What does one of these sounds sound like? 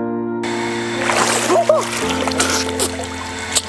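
Water splashes as a man scoops it over his face.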